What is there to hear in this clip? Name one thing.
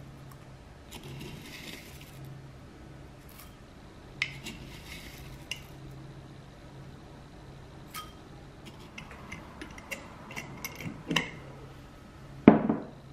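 Dry cereal patters into a glass bowl.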